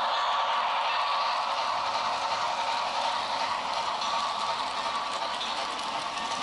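A model train rumbles steadily along metal tracks close by.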